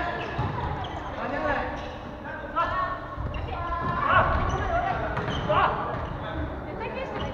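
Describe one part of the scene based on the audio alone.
Several young men shout and call out to each other in a large echoing gym.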